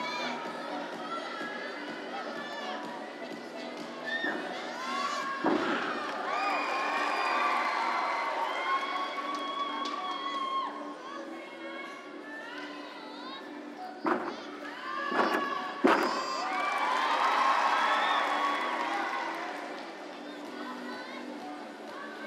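A crowd in a large echoing hall chatters and cheers throughout.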